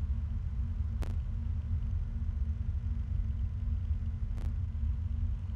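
A monitor clicks sharply as it switches feeds.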